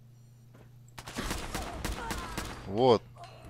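Rapid gunshots fire in a burst.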